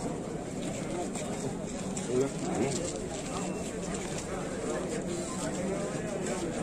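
Several men talk at once in a crowd outdoors.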